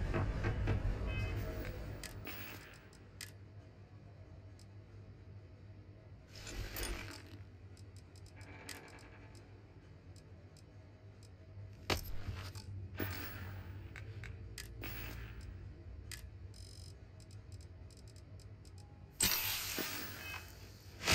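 Soft menu clicks and whooshes sound as items are selected.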